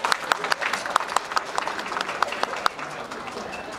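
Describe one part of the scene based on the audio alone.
Wooden clappers clack in a quick rhythm.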